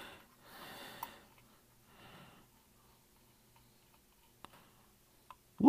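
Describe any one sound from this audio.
Small metal parts click softly as they are screwed apart and together.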